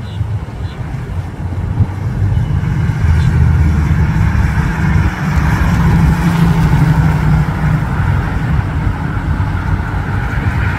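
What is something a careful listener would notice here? A V8 hot rod pickup rumbles as it drives past.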